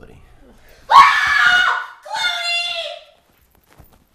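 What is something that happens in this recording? A young woman cries out loudly.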